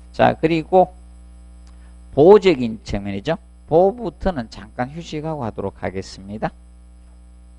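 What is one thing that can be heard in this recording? A man speaks calmly and closely into a headset microphone.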